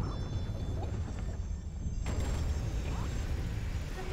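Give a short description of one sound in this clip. A bright musical chirp rings out in short bursts.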